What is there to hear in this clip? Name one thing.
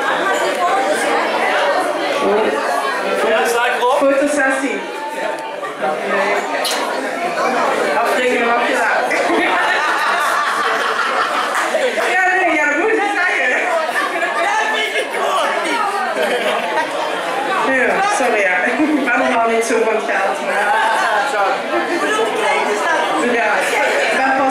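A band plays live music loudly in a small room.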